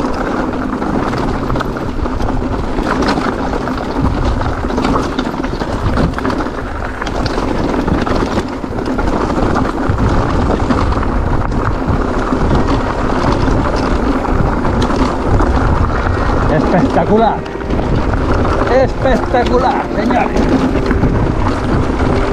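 Bicycle parts clatter over bumps.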